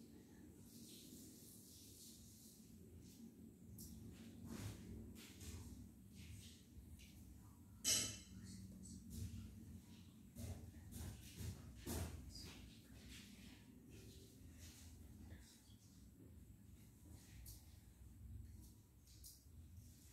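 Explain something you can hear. A middle-aged woman recites a prayer softly, close by.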